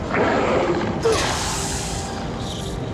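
A sword swishes through the air with a crackling hum.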